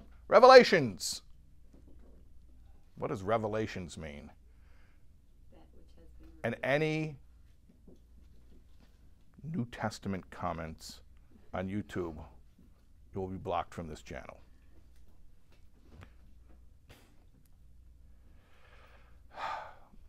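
A middle-aged man speaks calmly close by, in short phrases with pauses.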